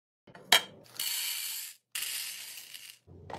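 Hard candies pour and rattle into a plastic container.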